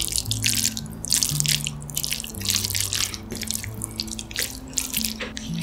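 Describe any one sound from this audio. Chopsticks lift sticky, saucy noodles with wet squelching sounds.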